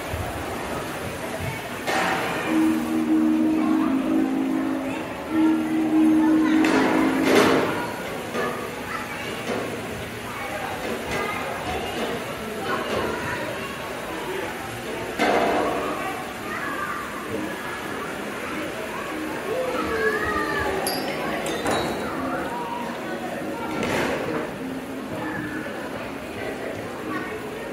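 Metal balls roll and clatter along metal tracks in a large echoing hall.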